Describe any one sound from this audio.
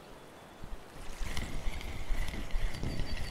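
A fishing reel whirs as line is reeled in.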